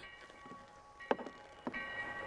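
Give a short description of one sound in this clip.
A door bangs shut.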